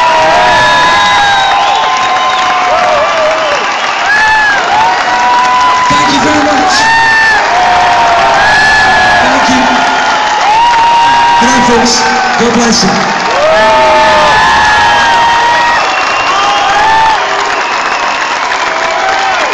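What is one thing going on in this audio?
An audience claps hands along.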